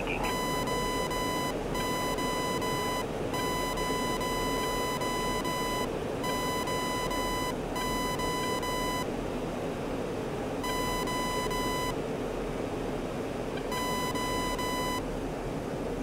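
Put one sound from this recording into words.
A cockpit warning tone beeps in repeated bursts.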